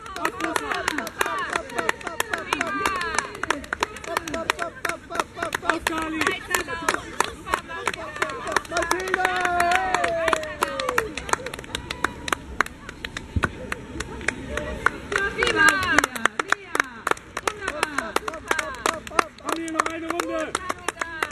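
Children shout and cheer outdoors.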